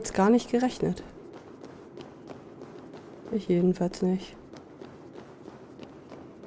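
Footsteps tap steadily on hard stone.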